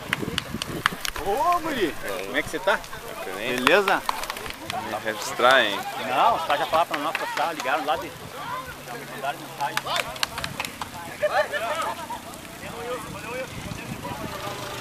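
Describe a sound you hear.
Several young men shout and call out at a distance outdoors.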